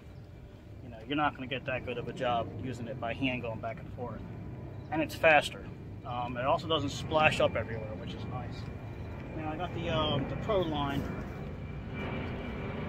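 A man with a deep voice talks calmly and close by, outdoors.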